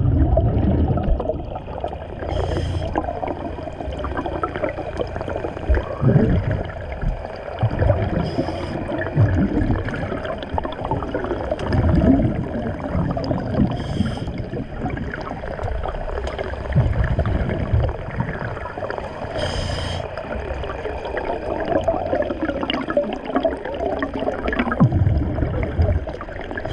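Water rushes and churns around an underwater microphone.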